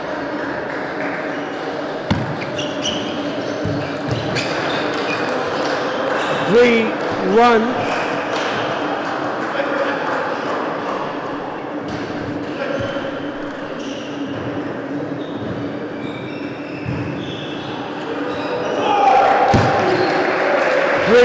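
A ping pong ball clicks back and forth off paddles and a table in a large echoing hall.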